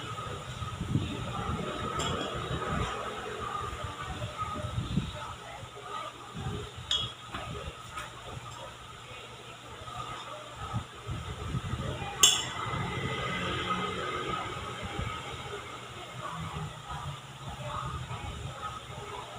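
A metal spoon scrapes and clinks against a steel bowl.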